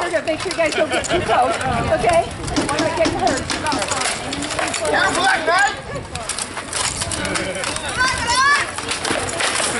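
A crowd of people talks and murmurs outdoors.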